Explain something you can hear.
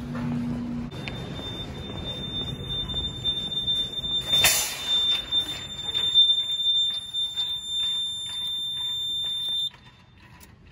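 A fire alarm panel gives a steady, high-pitched beep that suddenly stops.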